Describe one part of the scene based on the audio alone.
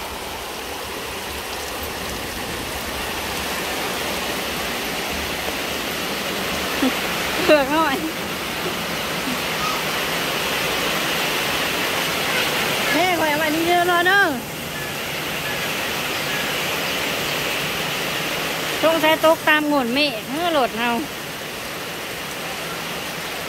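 Steady rain falls and patters on a metal roof outdoors.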